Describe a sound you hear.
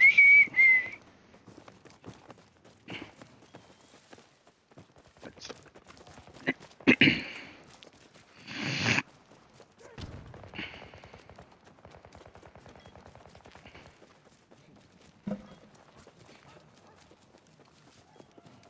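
Footsteps run quickly through wet mud.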